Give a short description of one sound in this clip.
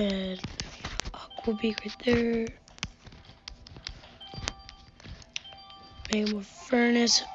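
Game pieces pop and chime as they match and clear.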